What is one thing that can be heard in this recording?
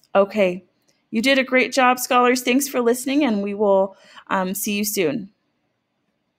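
A woman reads aloud expressively into a microphone, close by.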